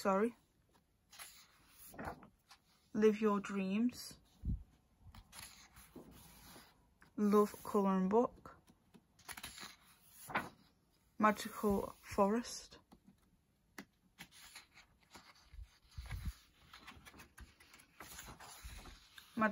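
Paper pages rustle as they are turned.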